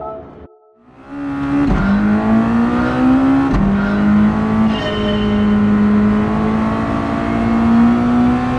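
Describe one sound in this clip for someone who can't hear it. A racing car engine revs up loudly and climbs through the gears.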